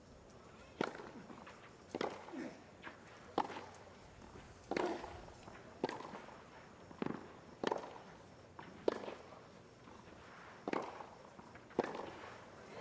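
Tennis balls are struck back and forth in a steady rally, each hit a sharp pop.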